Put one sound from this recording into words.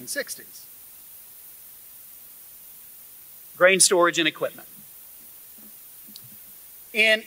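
A man speaks calmly through a microphone in a large hall, with pauses between phrases.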